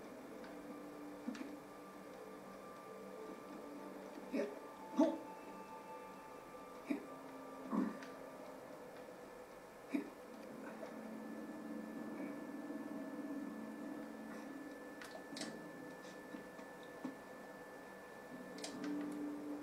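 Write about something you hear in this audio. Soft game music plays through a television speaker, steady and quiet.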